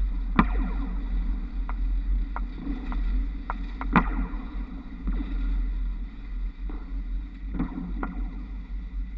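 Tram wheels clank over rail joints a few times.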